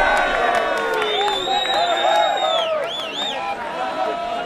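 A referee's whistle blows with long shrill blasts.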